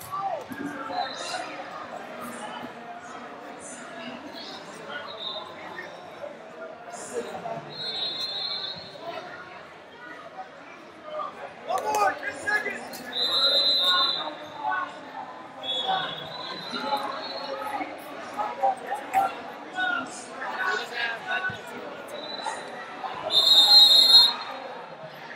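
A referee blows short, sharp whistle blasts.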